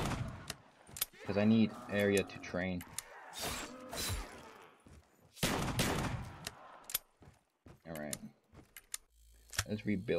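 A shotgun is reloaded with metallic clicks.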